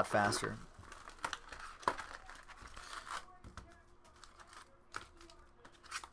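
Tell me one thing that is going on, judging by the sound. Cardboard packs crinkle as a box is opened.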